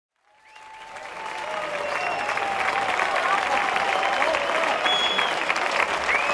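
Members of a crowd whistle shrilly.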